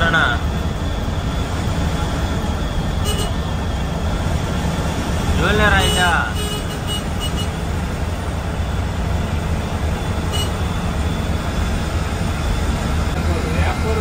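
A bus engine rumbles steadily while driving on a highway.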